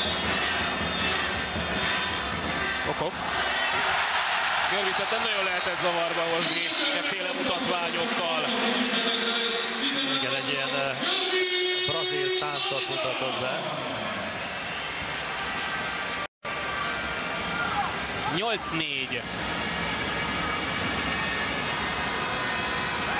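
A large indoor crowd cheers and roars loudly.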